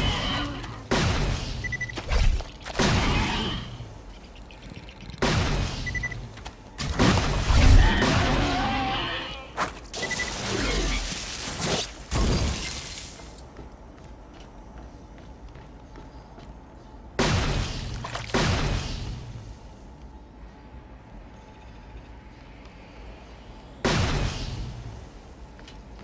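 Guns fire in loud bursts.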